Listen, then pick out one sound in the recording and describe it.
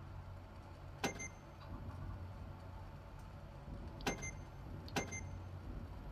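Short electronic beeps sound as menu items are picked.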